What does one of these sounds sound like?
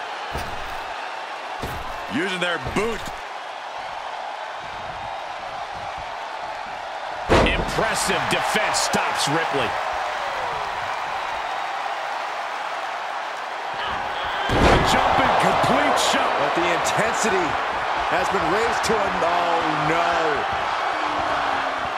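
A large arena crowd cheers and roars throughout.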